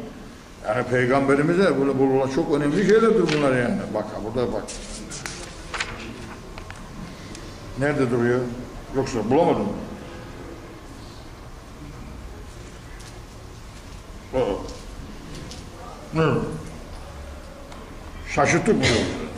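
An elderly man chants melodically through a microphone, in short phrases with pauses.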